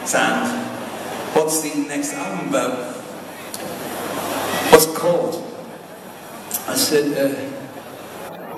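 A man sings through loudspeakers.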